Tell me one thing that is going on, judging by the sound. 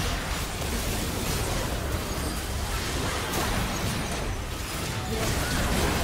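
Magic blasts and spell effects crackle and boom in a busy video game battle.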